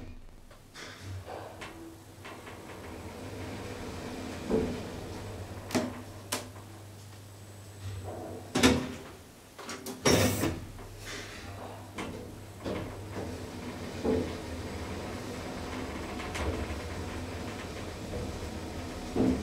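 An elevator hums steadily as it travels between floors.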